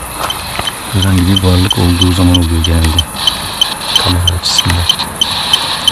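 A man's low, distorted voice comes in short bursts through a phone loudspeaker.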